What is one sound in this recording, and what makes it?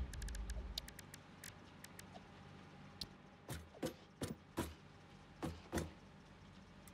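Short sharp clicks tick out one after another.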